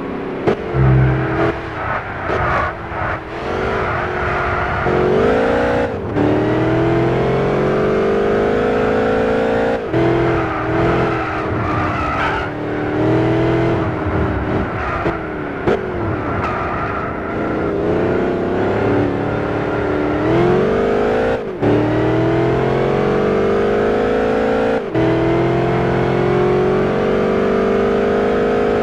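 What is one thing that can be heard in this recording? A supercharged V8 sports car engine accelerates at full throttle.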